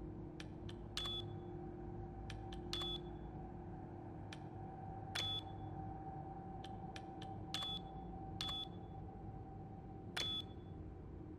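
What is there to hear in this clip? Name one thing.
A keypad gives a short electronic beep with each press.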